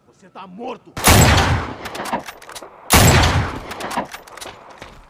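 A sniper rifle fires loud booming shots.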